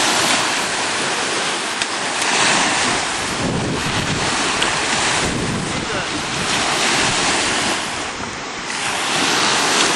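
Small waves break and wash up on a sandy beach.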